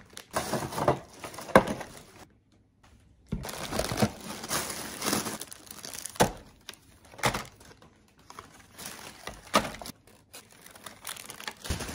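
Plastic packages clatter on a table.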